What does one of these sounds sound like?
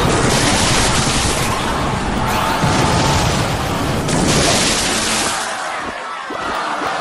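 Video game battle effects crash and clatter busily.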